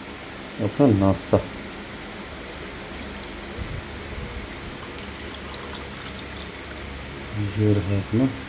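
Juice pours into a glass.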